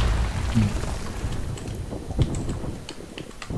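A gun fires a short burst.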